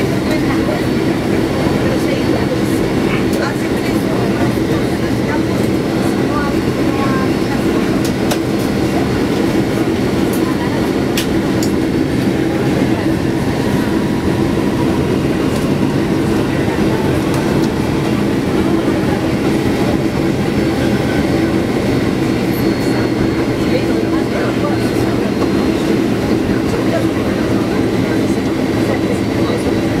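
Aircraft wheels rumble over a runway.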